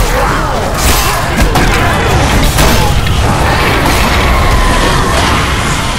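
Blades clash and strike armour in a fight.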